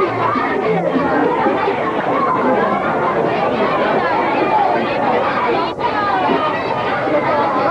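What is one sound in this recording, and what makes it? A crowd of young people chatters in the background.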